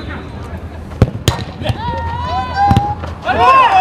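A ball is kicked with sharp thuds.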